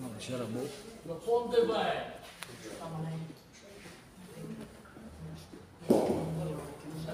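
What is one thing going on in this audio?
Men talk nearby in an echoing hall.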